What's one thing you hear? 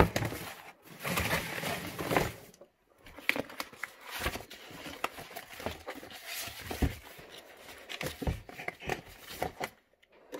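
Paper rustles and crinkles close by as a hand leafs through it.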